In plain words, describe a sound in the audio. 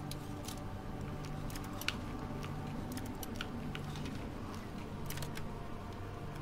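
Lock picks click and scrape inside a door lock.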